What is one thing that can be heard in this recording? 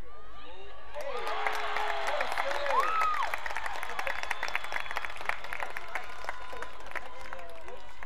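A crowd of spectators claps.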